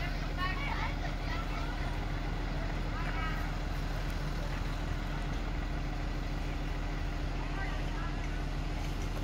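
Children shout and call out in the distance outdoors.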